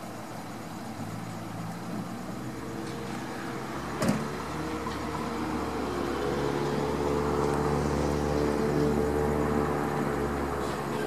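A car engine idles nearby with a steady hum.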